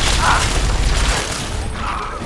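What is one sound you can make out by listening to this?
A heavy machine gun fires a loud rapid burst.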